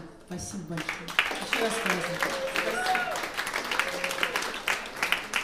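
A young woman sings through a microphone.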